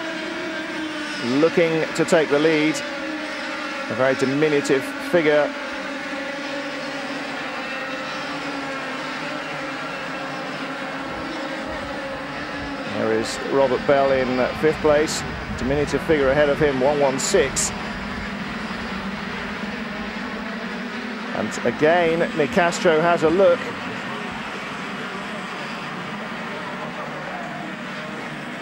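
Racing kart engines buzz and whine loudly as the karts speed past.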